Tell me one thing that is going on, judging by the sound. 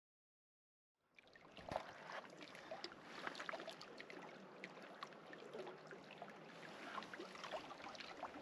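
Small waves lap and trickle against rocks at a lake's edge.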